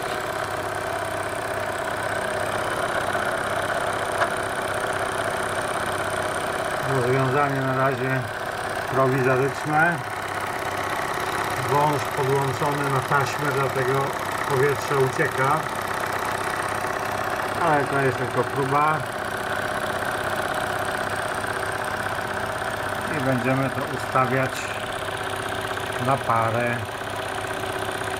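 A small steam engine runs with a steady whirring hum.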